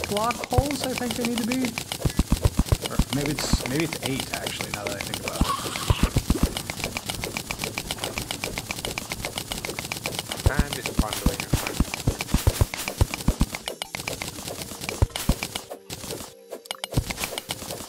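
A pickaxe clicks rapidly as it chips away at blocks.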